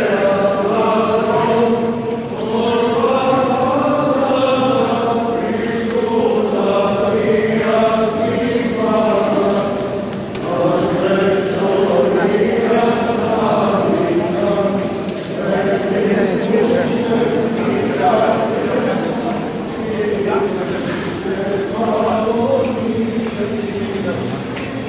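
Men chant together in a slow, steady hymn, echoing in a large hall.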